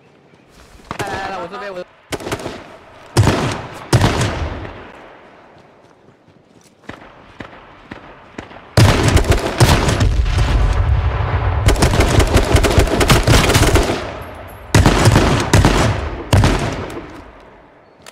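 Gunshots fire in rapid bursts, close by.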